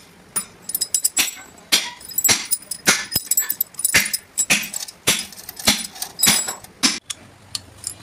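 Metal parts clink and rattle against each other.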